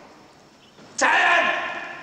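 A man shouts a loud command in an open courtyard.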